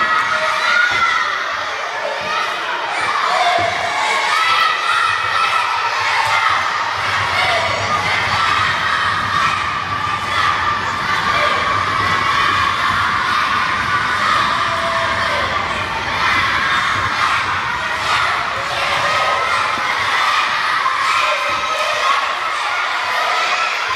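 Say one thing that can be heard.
A crowd of children shouts and cheers loudly in a large echoing hall.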